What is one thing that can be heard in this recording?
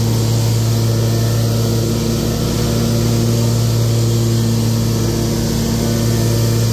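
A mower engine drones loudly and steadily up close.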